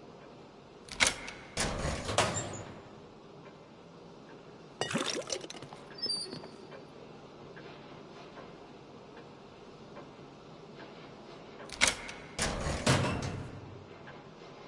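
A heavy metal door unlatches with a clank and creaks open.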